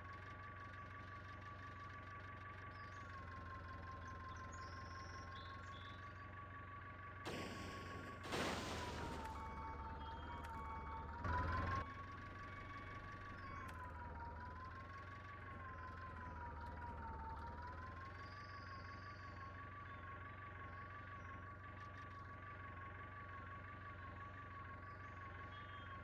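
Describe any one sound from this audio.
A tractor engine drones steadily, its pitch wavering as it climbs.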